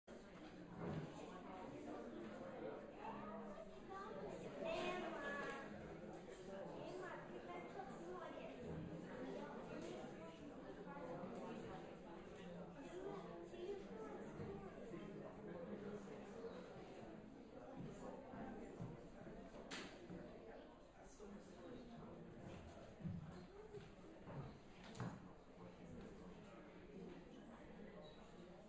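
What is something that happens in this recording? A seated audience murmurs and chatters quietly in an echoing hall.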